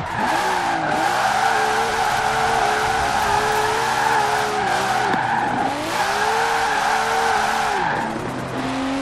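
Tyres squeal as a sports car drifts on asphalt.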